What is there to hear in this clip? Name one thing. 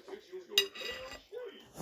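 A plate clinks and knocks close by.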